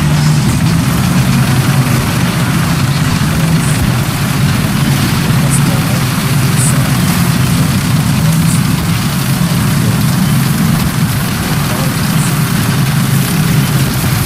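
Tank tracks clatter and squeak as the tank drives.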